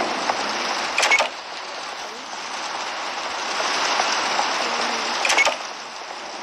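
A door opens with a short clatter.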